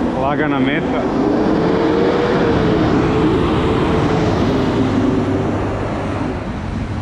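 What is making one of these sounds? A bus engine rumbles and whines close by as the bus turns past.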